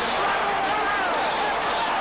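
A man shouts on the sidelines.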